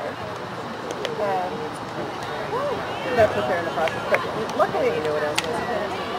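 Field hockey sticks crack against a ball.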